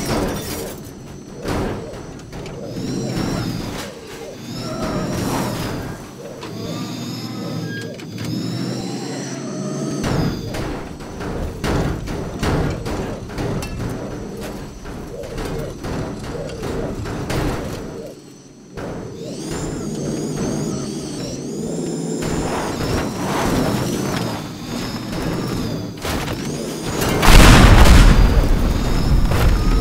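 Metal crashes and crunches in repeated impacts.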